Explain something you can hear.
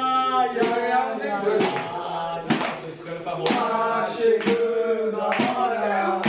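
Men clap their hands.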